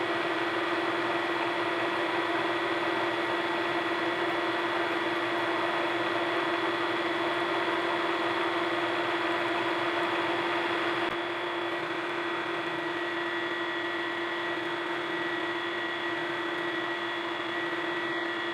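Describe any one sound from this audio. A drill bit grinds steadily into metal with a high whine.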